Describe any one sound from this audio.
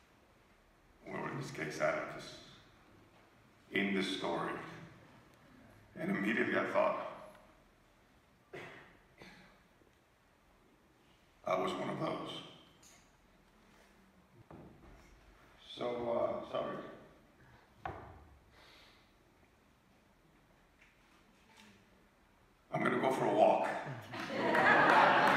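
A middle-aged man speaks with animation through a microphone and loudspeakers in a large echoing hall, pausing between phrases.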